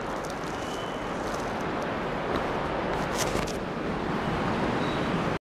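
An elderly man speaks steadily into a microphone.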